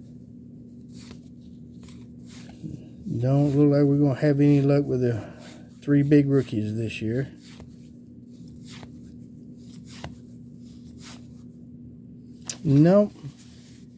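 Trading cards flick and rustle as they are shuffled through by hand.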